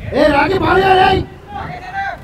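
Men shout from across an open field.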